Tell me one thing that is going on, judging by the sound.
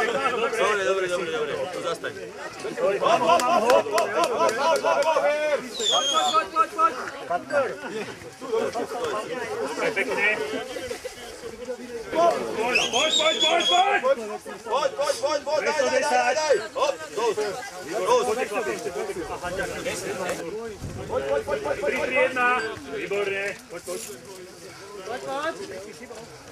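A crowd of men and women cheer and shout outdoors nearby.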